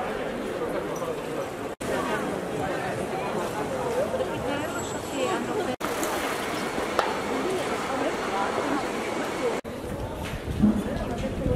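A crowd of people chatters steadily outdoors.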